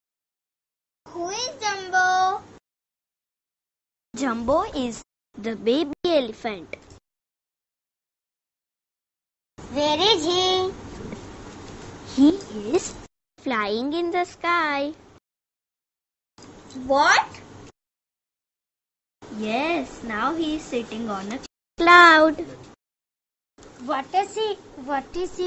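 Children speak their lines in turns, loud and clear through a microphone.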